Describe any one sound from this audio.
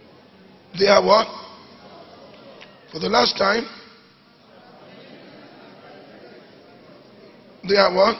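A man speaks into a microphone in loud, short bursts.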